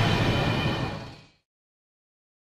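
A gun fires loudly.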